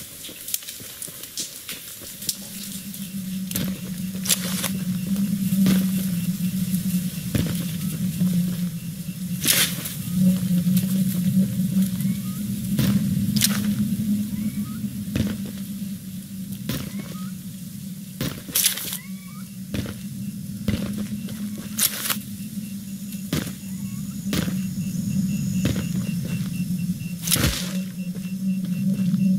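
Footsteps crunch over dirt and dry grass.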